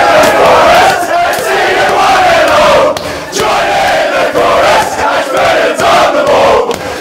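A crowd of young men sings and chants loudly together.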